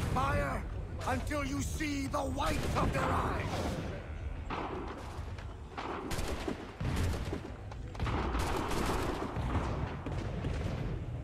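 Soldiers' boots shuffle and march over the ground.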